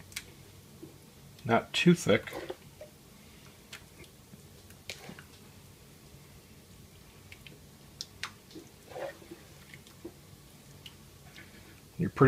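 A wooden spoon scrapes and taps against a metal pot and pan.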